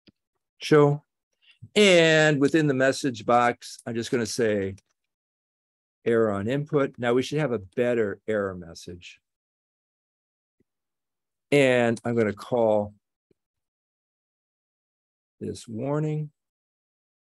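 An elderly man speaks calmly through a microphone in an online call, in short phrases with pauses.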